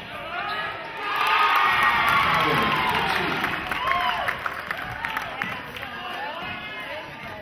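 A crowd of spectators cheers and shouts loudly, then fades.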